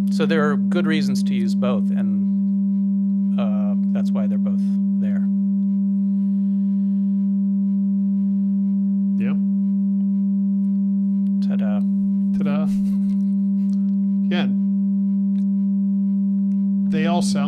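A steady, pure electronic tone hums throughout.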